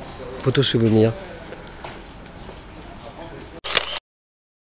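A man speaks animatedly into a microphone close by.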